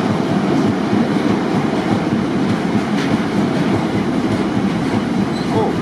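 A freight train rumbles and clatters past on the tracks.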